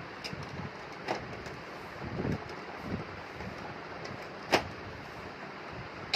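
A plastic panel clicks and rattles as hands handle it.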